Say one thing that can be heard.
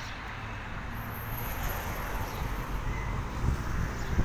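A car drives past close by on the street.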